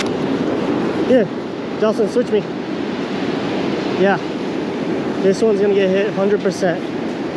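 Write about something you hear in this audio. A man speaks calmly, close up.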